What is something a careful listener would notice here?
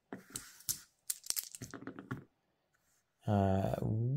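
Dice clatter onto a table.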